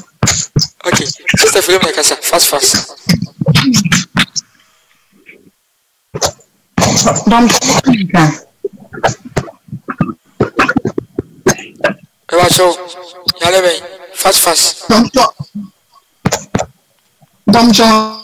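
A young man preaches loudly and with animation through a microphone.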